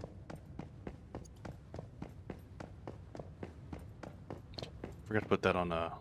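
Footsteps tap at an even pace on a hard floor.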